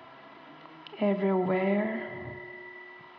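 A woman sings a long, wavering note close by.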